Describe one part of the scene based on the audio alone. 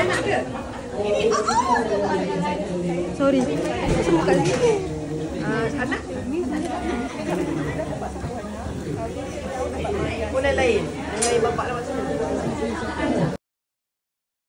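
Women chat and laugh close by.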